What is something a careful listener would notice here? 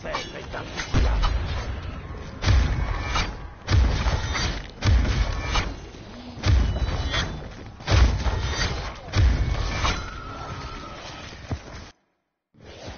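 A sword slashes and strikes with heavy thuds.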